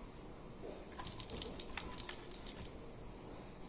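Small buttons click on an electronic board.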